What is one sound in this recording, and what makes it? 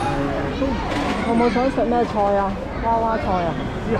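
A woman talks with a vendor nearby.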